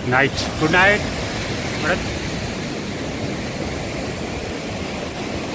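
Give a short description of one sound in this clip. Waves wash gently onto the shore.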